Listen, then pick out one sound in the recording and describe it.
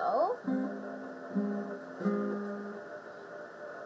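A guitar plays a few plucked notes up close.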